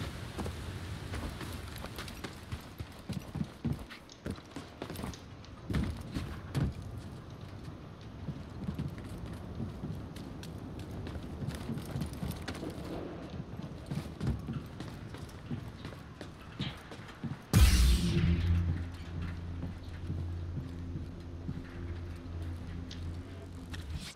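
Footsteps thud on rock and metal.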